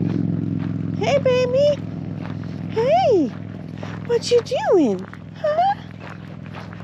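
A dog whines and yelps in rising and falling cries.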